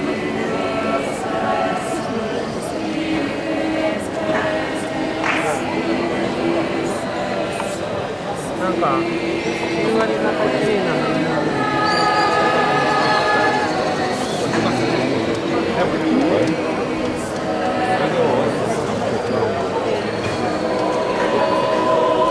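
A mixed choir of young men and women sings together, echoing outdoors.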